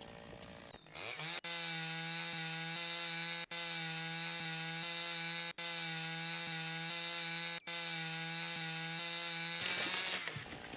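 A chainsaw revs high and steady while cutting into a tree trunk.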